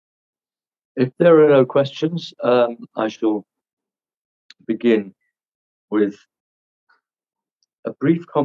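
A middle-aged man speaks calmly in bursts with pauses, heard through an online call.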